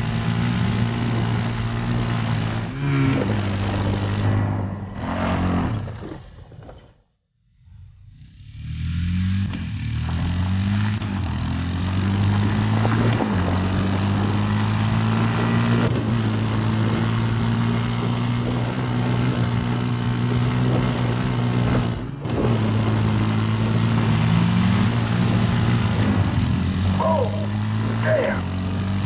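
A quad bike engine drones loudly and revs up and down.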